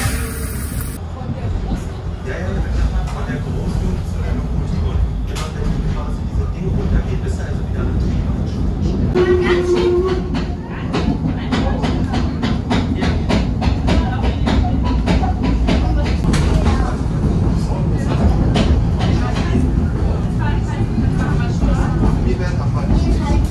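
A train carriage rumbles and clatters along the rails.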